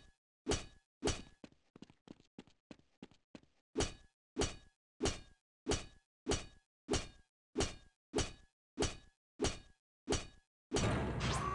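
An axe strikes a metal crate with sharp, rhythmic clangs.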